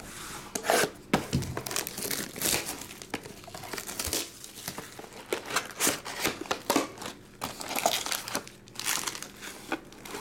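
A cardboard box is handled and tapped, with soft knocks and scrapes.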